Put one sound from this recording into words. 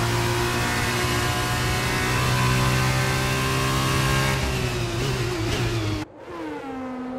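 A racing car engine roars loudly up close, shifting gears.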